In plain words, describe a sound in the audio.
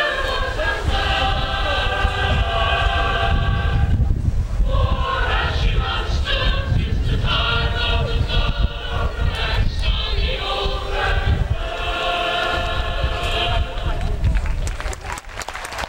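A man's voice comes through loudspeakers in the open air, far from the listener.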